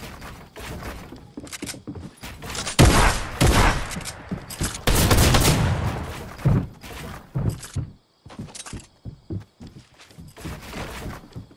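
Building pieces in a video game snap into place with quick clacks.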